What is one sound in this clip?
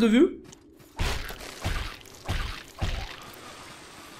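A blade slashes and strikes in a fight.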